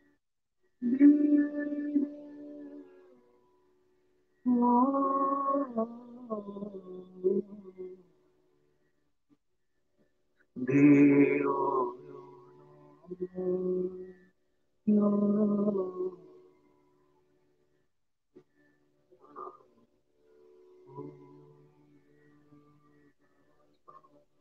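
An older man sings in long held notes, heard through an online call.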